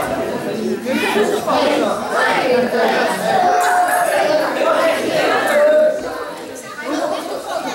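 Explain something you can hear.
Children cheer and shout excitedly.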